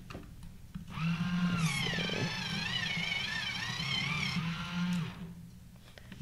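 A pencil sharpener whirs while grinding a pencil.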